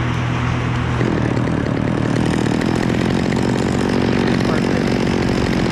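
A chainsaw revs loudly close by.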